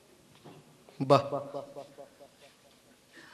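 A woman speaks tearfully close by.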